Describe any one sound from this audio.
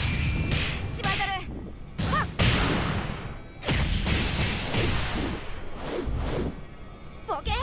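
A young woman's voice shouts and grunts with effort.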